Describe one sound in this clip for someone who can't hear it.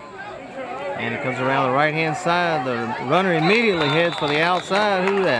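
Adult spectators nearby cheer and yell loudly.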